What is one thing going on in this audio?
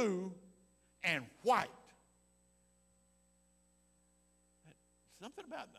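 An elderly man speaks with animation through a microphone, pausing between phrases.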